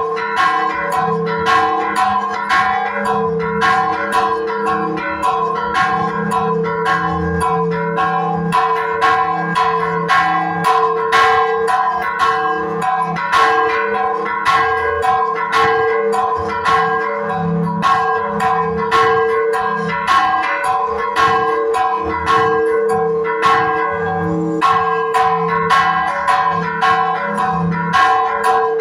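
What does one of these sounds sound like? Church bells ring loudly and rapidly up close, their clangs ringing on and overlapping.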